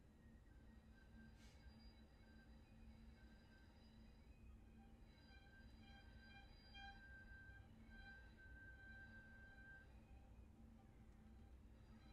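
A violin plays a slow, sustained melody close by.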